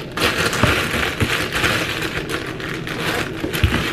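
A plastic zipper bag snaps shut.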